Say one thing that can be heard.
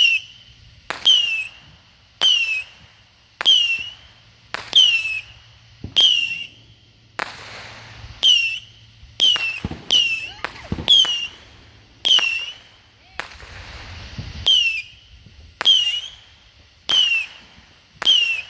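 Small fireworks give a short, shrill whistle after each crack.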